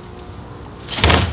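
A plastic bin lid slams shut with a loud thud.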